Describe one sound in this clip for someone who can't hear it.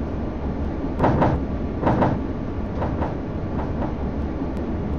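Tram wheels clatter over track joints and points.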